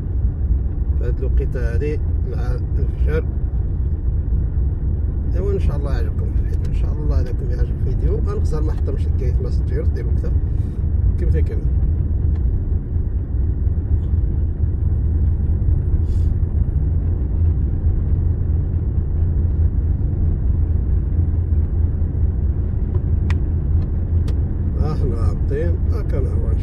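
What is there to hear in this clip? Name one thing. A car engine hums steadily with a low rumble from inside the car.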